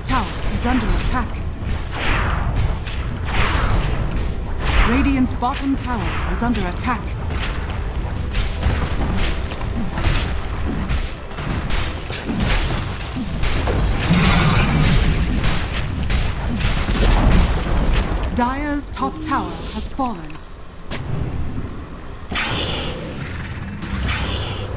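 Game spell effects crackle and burst.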